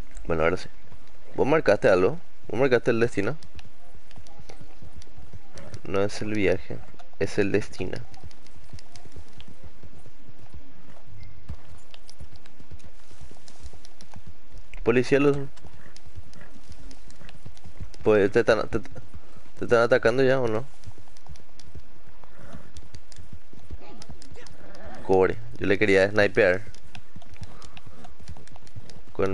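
A horse gallops with quick, steady hoofbeats on soft ground.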